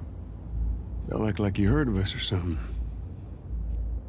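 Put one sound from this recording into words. A middle-aged man speaks in a low, easy voice.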